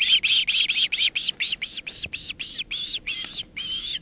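Wings flap as a bird lands nearby.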